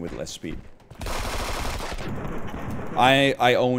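Gunshots from a video game ring out in quick bursts.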